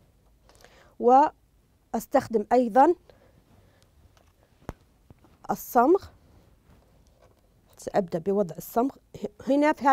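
A woman speaks calmly and clearly, close by, in short phrases.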